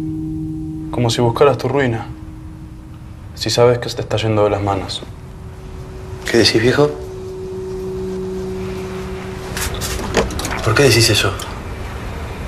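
A man speaks quietly and tensely nearby.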